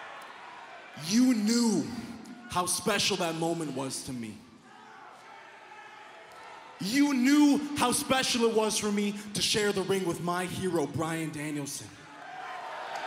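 A young man shouts forcefully into a microphone over loudspeakers in a large arena.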